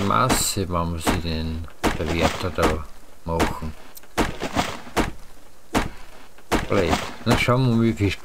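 An axe chops into a tree trunk with repeated thuds.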